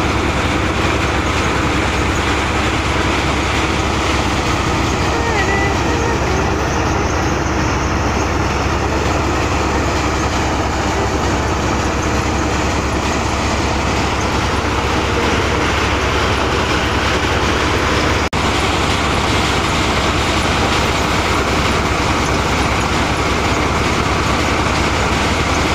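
Straw rustles as bundles are fed into a threshing machine.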